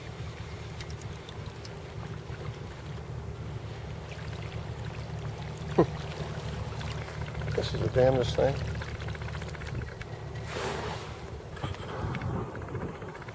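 Wind blows steadily across open water.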